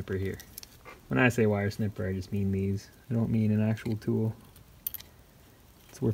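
Wire cutters snip with a sharp click.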